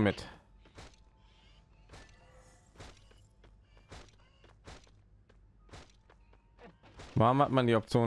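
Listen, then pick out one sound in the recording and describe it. Footsteps crunch slowly on sandy ground.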